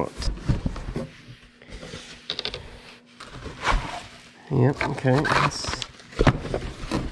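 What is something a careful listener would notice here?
Cardboard scrapes and thumps as items are shuffled in a box.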